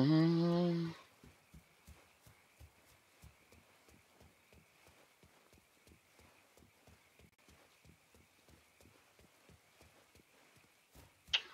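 Footsteps thud quickly and steadily on soft ground as someone runs.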